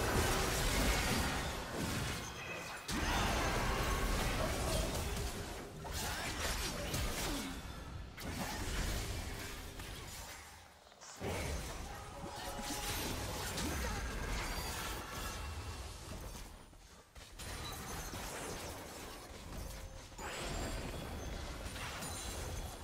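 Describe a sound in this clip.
Spell effects whoosh and crackle in a game battle.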